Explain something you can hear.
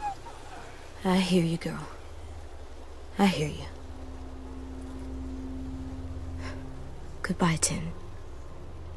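A young boy speaks softly and sadly.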